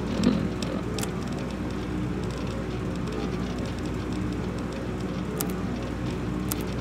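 Short electronic clicks sound as menu items are selected.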